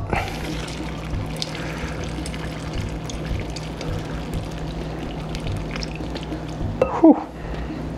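Liquid pours from a pot into a jar.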